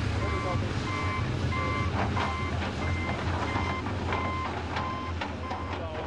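An excavator bucket scrapes and knocks against dirt and stones.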